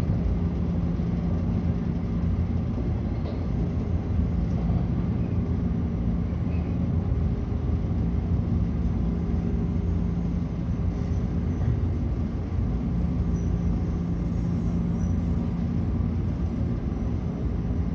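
A train's motor hums low and steady.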